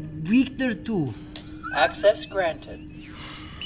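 A young man speaks quietly and close by.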